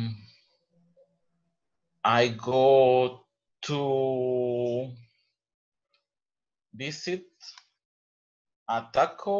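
A man speaks with animation over an online call, in drawn-out phrases.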